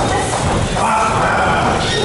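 A shin kick thuds against a man's body.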